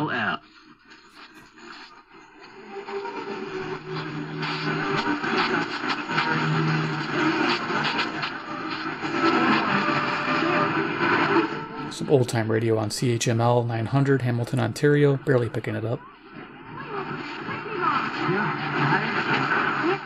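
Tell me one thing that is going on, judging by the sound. A small radio speaker plays stations with music and voices as the dial is tuned.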